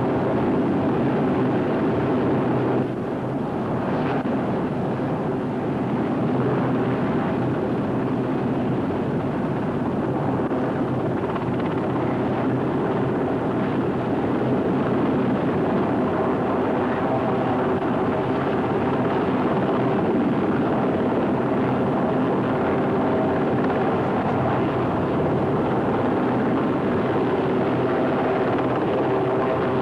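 A Sea King helicopter hovers low over water, its rotor beating and turbines whining.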